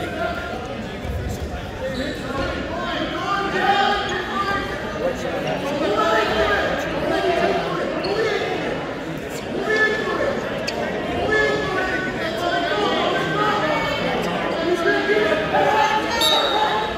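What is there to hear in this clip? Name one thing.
Wrestlers thud and scuffle on a mat.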